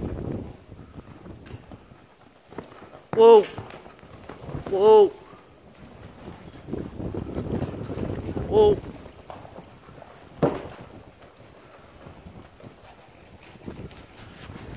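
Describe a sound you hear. Horse hooves thud on soft dirt.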